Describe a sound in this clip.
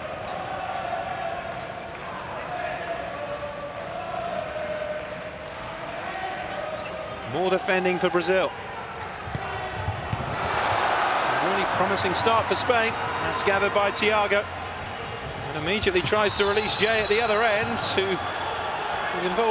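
A large crowd cheers and roars in an echoing arena, swelling loudly at times.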